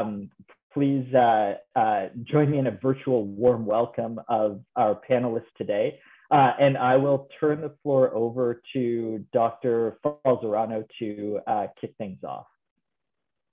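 A man speaks calmly and steadily over an online call.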